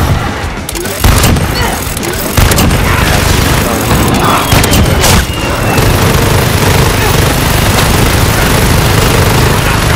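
A rotary machine gun fires a long, steady roaring stream of shots.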